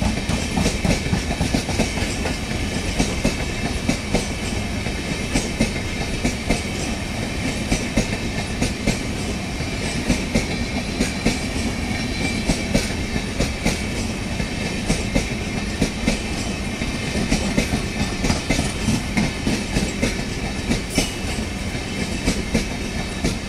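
A passenger train rumbles past close by.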